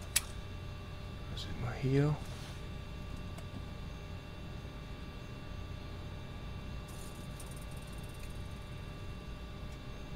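An aircraft engine hums steadily.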